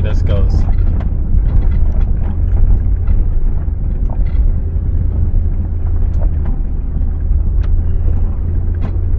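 A vehicle engine rumbles low and steady as it drives slowly.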